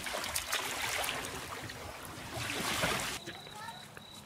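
Water splashes around legs wading in shallow water.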